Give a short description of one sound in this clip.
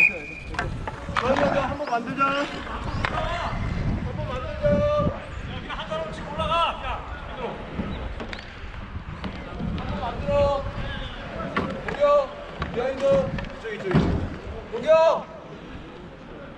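Men call out and shout to each other nearby, outdoors.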